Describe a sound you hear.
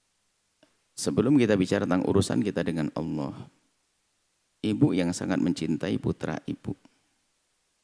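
An elderly woman speaks calmly into a close microphone, with pauses.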